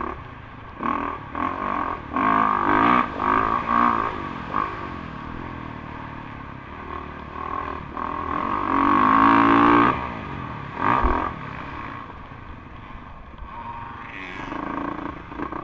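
A dirt bike engine revs loudly up close, rising and falling in pitch.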